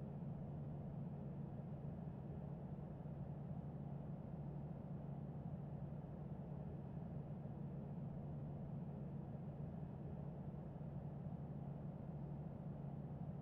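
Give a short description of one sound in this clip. Jet engines hum steadily at low power.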